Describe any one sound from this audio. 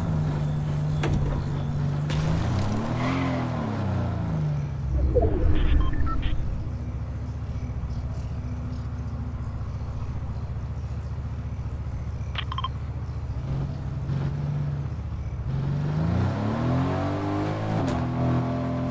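A vehicle engine hums steadily and revs up and down.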